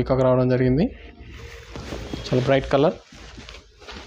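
Silk fabric rustles as it is handled.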